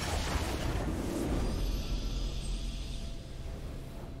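A triumphant fanfare swells and fades.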